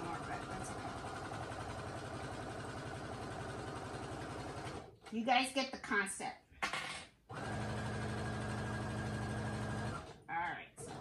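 A sewing machine hums and stitches rapidly.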